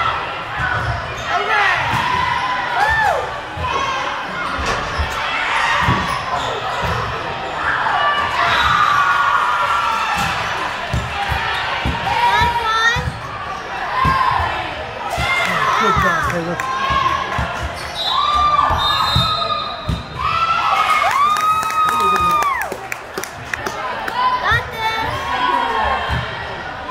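A crowd of girls chatters and cheers in a large echoing hall.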